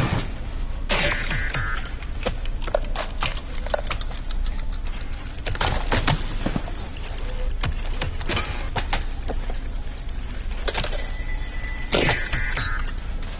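A bright electronic chime rings out.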